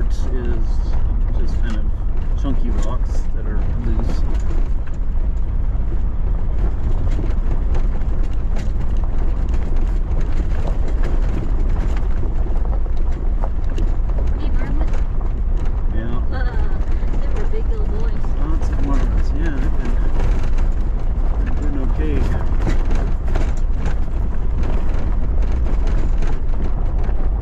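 Tyres crunch and rattle over loose gravel.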